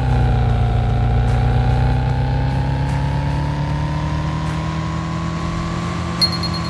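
A truck engine hums steadily and slowly rises in pitch as it speeds up.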